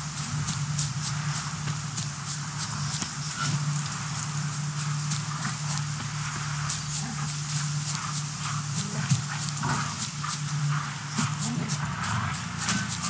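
Footsteps run quickly through dry grass.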